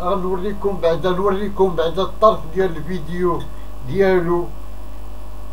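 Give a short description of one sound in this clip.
A middle-aged man speaks close by with animation.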